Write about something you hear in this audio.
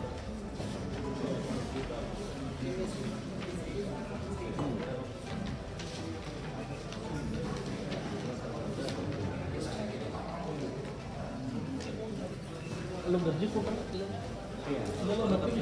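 Papers rustle as a man handles documents.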